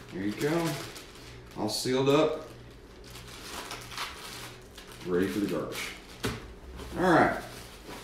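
A plastic bag crinkles in a man's hands.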